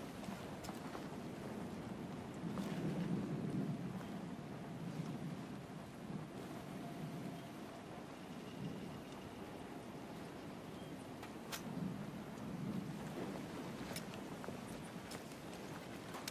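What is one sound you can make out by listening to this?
Footsteps shuffle and scrape over loose debris.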